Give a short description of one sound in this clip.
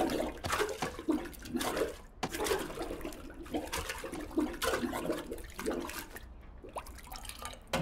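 Water splashes and gurgles in a toilet bowl.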